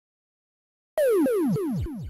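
Electronic bleeps slide down in pitch, one after another.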